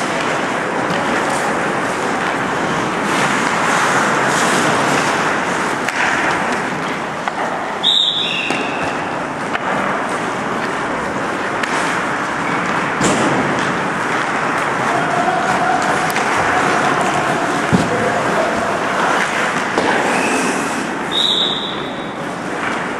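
Ice hockey skates scrape and carve on ice in an echoing indoor rink.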